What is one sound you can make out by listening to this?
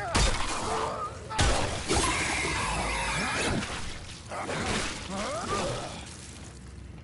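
A monster snarls and screeches up close.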